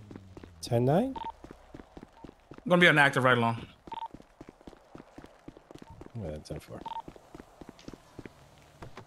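Footsteps tap quickly on pavement.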